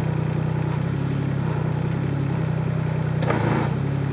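Loose earth falls and patters from a raised bucket.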